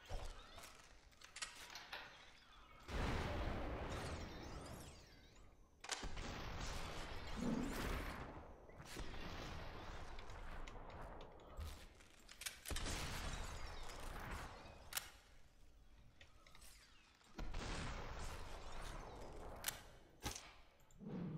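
Gunshots ring out sharply several times.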